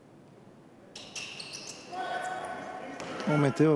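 Sneakers squeak on a wooden floor as players run.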